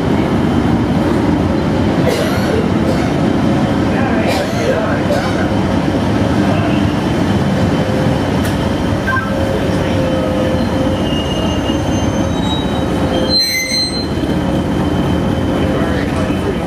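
A diesel-electric multiple unit engine drones as the train pulls slowly into the platform.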